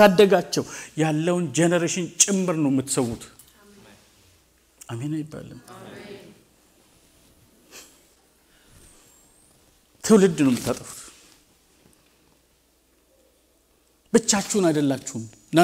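A man preaches with passion through a microphone in a large echoing hall, pausing between bursts of speech.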